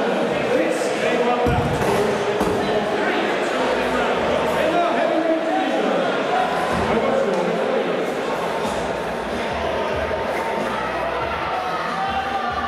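A man announces loudly through a microphone over loudspeakers in a large echoing hall.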